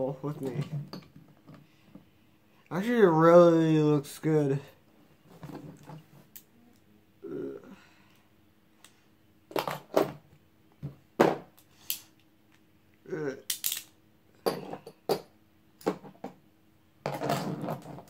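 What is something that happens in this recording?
Plastic toy parts click and clack as hands handle them.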